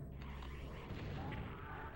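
A shotgun blasts in a video game.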